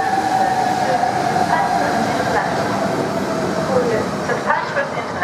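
A train rushes past close by with a loud rumble.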